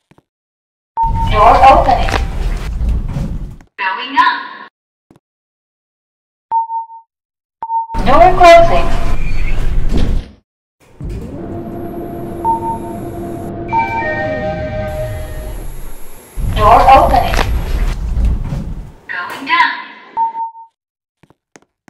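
An elevator chime dings.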